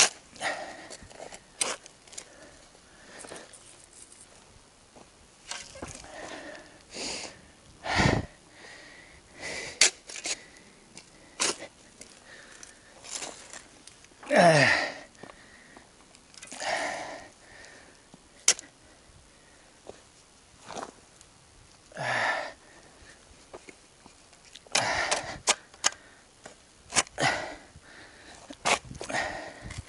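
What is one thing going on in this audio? A shovel scrapes and digs into gravelly soil.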